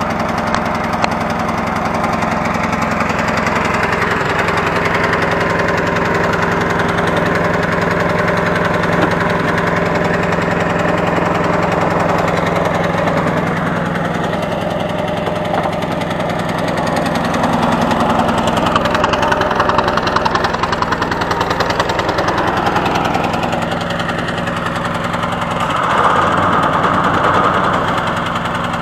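A ride-on mower engine runs steadily close by.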